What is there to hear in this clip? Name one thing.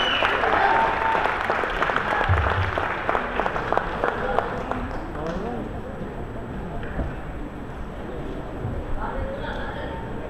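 A woman sings into a microphone over a loudspeaker.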